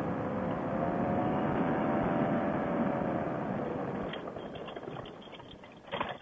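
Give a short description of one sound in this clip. A paramotor trike's engine drones as the trike taxis across grass.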